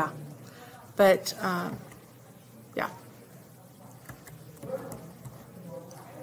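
A woman speaks calmly into a computer microphone.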